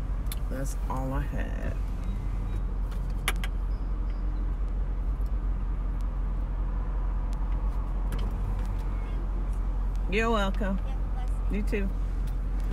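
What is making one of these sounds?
A woman speaks calmly, close by, in short bursts.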